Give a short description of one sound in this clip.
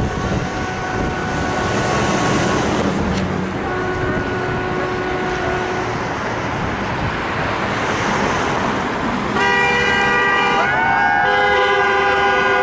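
Traffic hums steadily along a city street.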